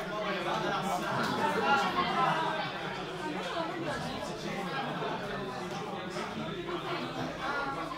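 Cards tap and slide on a soft mat.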